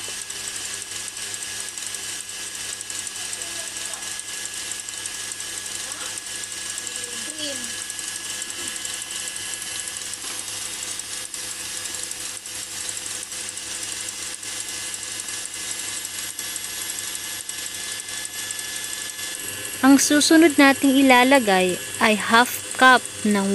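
A stand mixer whirs steadily as its whisk beats in a metal bowl.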